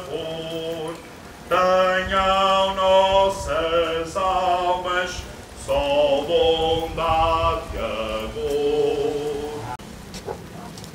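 A crowd of men and women sings a hymn together outdoors.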